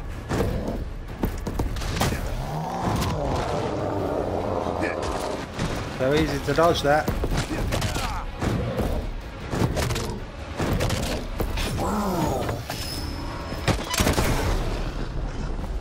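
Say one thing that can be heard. Blows and thuds land in a fight, with sharp hits.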